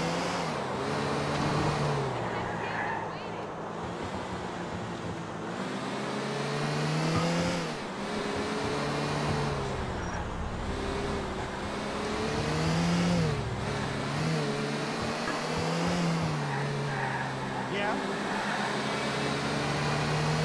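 A car engine hums and revs up and down as the car drives along.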